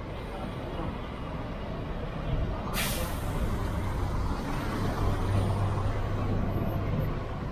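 A bus engine rumbles deeply as the bus slowly pulls forward close by.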